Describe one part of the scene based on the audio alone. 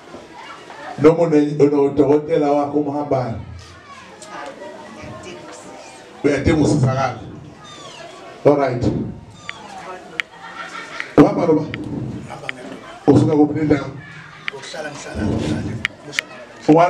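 A man chants loudly into a microphone through a loudspeaker.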